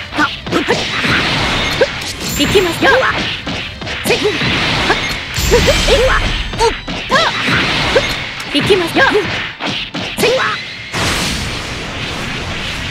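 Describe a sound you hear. Energy blasts whoosh and crackle in a fast fight.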